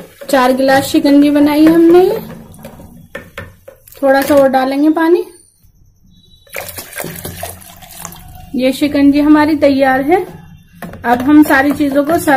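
A spoon stirs and scrapes inside a plastic jug.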